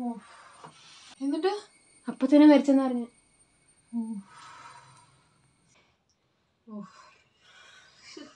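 A second young woman answers calmly.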